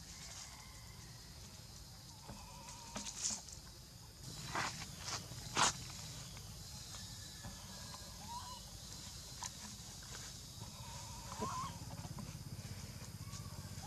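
Monkeys' feet patter and rustle on dry leaves and dirt.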